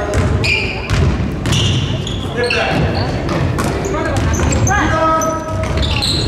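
A basketball bounces on the floor, echoing in a large hall.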